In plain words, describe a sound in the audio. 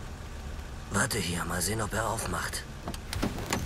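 A young man speaks calmly inside a car.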